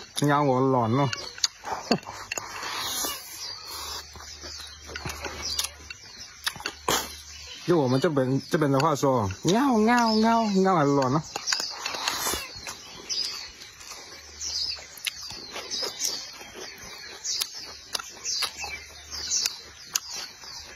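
A young man chews and slurps food noisily.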